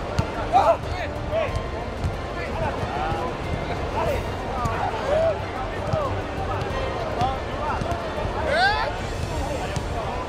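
A large crowd murmurs in a stadium.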